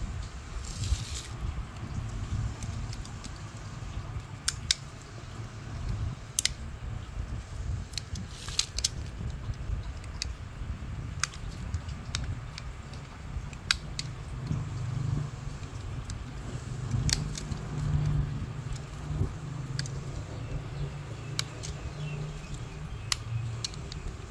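A knife blade scrapes and clicks against tree bark, up close.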